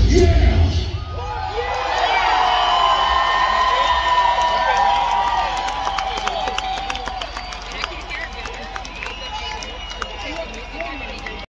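A large crowd cheers and whistles.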